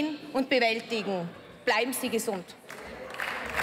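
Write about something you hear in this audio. A woman speaks through a microphone.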